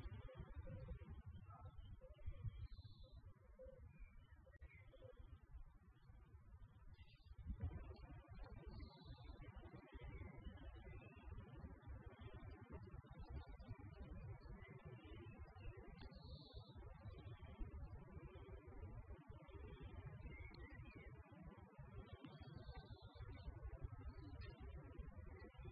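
Wind rumbles across the microphone outdoors.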